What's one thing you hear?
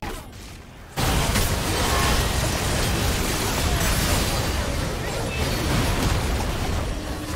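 Video game spells and weapons clash and burst loudly in a busy battle.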